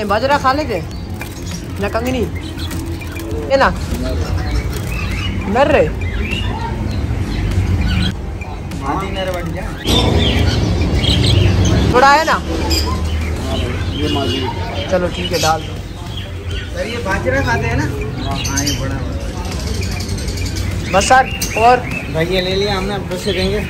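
Small birds chirp and squawk close by.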